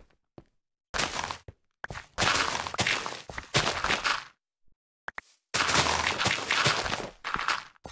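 A shovel digs rapidly through dirt blocks with a crunching, crumbling sound.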